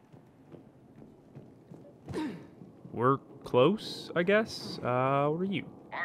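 Heavy footsteps crunch on rough ground.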